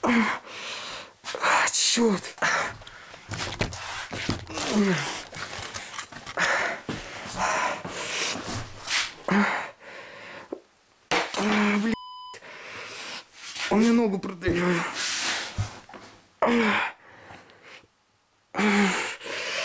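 Hands fumble and rub close by.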